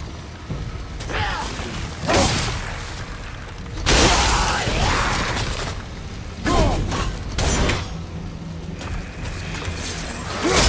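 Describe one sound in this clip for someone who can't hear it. A heavy axe whooshes and strikes in bursts.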